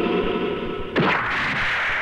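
A heavy blow lands with a sharp impact.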